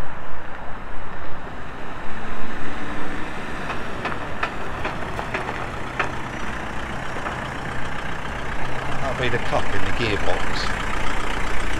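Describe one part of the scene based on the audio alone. A van engine idles and approaches slowly.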